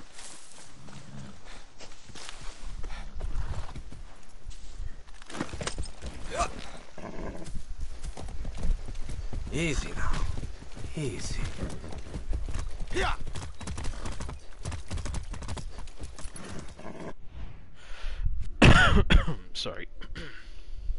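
A man talks casually through a headset microphone.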